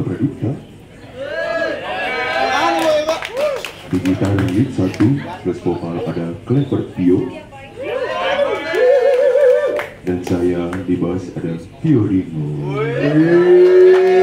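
A live band plays amplified music with electric guitars and bass.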